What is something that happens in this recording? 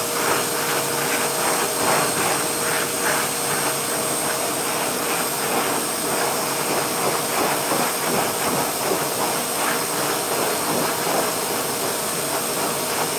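A pet dryer blows air with a loud, steady whoosh.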